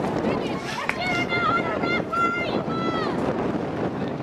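A young woman shouts loudly across an open field.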